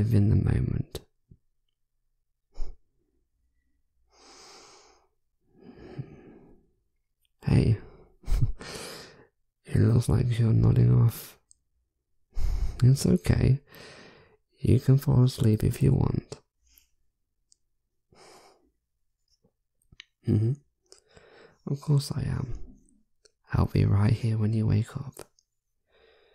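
A young man speaks softly, close to a microphone.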